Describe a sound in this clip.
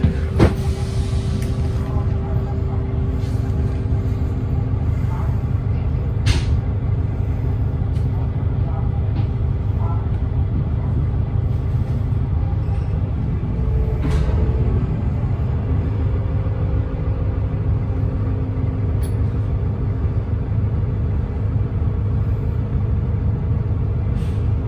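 A bus engine rumbles steadily from inside the bus.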